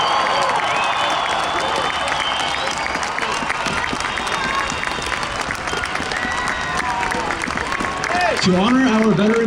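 A crowd chatters and cheers in a large open stadium.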